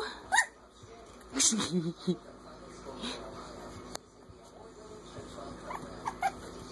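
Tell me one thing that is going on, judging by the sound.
Puppies' paws patter and scratch on a mat.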